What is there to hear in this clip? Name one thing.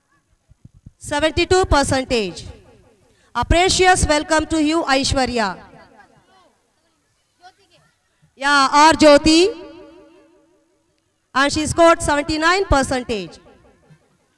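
A woman's voice calls out loudly through a loudspeaker, echoing outdoors.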